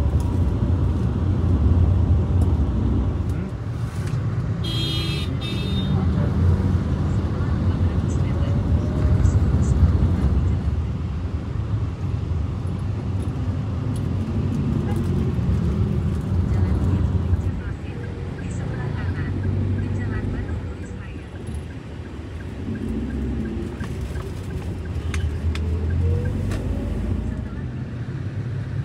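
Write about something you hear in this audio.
Motorcycle engines hum and rumble nearby in city traffic.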